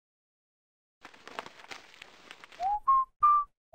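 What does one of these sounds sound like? A newspaper rustles as it is unfolded.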